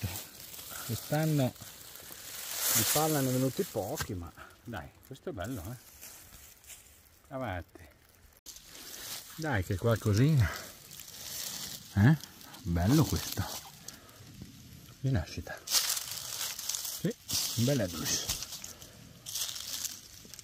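Dry leaves rustle under a hand.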